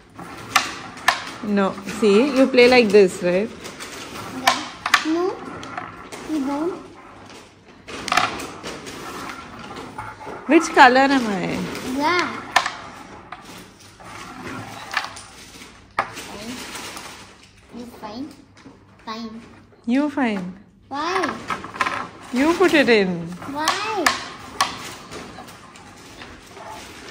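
Wooden game pieces click sharply as they are flicked across a board.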